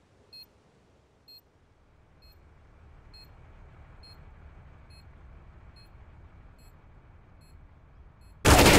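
A bomb beeps at a steady, regular pace.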